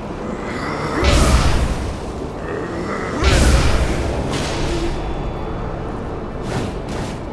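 A loud magical whoosh bursts out.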